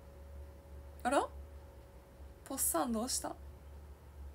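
A young woman speaks softly and briefly close to a microphone.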